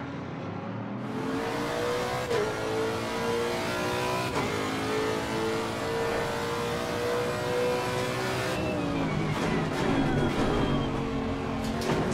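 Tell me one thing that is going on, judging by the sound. A racing car engine revs high and shifts gears from inside the cockpit.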